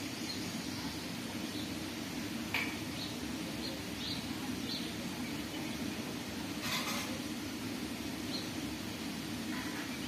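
Baby birds peep softly and faintly.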